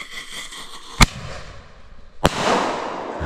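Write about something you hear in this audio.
A firework bangs sharply.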